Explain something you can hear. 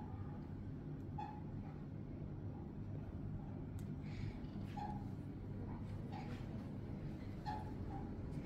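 Clothes rustle as they are handled.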